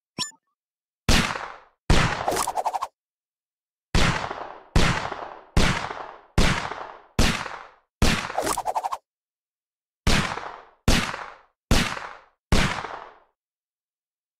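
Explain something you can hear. Loud game blasts go off again and again in sharp, quickly fading bursts.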